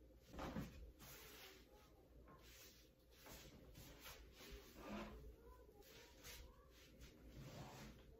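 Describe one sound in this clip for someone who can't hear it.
Hands rub and pat stiff denim with soft rustling.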